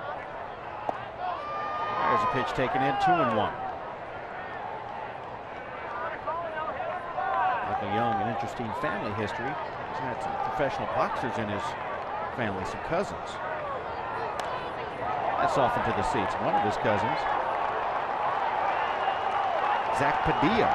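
A crowd murmurs in a large outdoor stadium.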